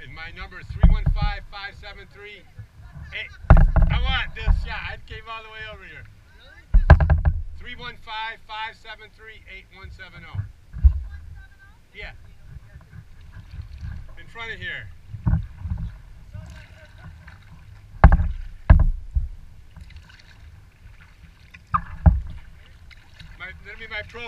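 Water laps softly against the hull of a gliding kayak.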